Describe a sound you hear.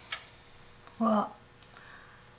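A woman speaks hesitantly, briefly and softly.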